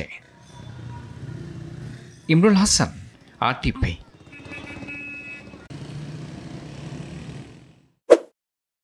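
Street traffic hums with engines idling and passing.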